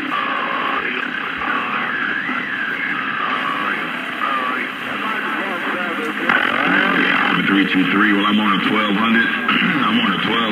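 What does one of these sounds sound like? A radio receiver hisses and warbles with a noisy, wavering signal.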